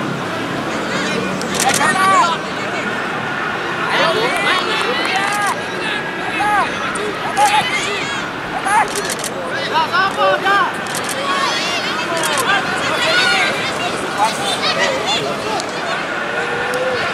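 Young children shout and call out across an open field outdoors.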